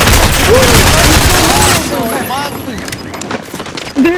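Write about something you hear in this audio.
An explosion booms close by.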